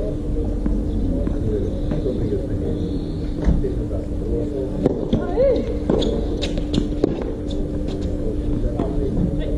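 Tennis balls are struck with sharp pops of a racket, back and forth.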